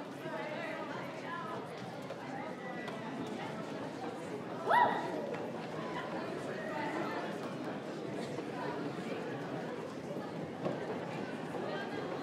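A crowd of young people chatters in an echoing hall.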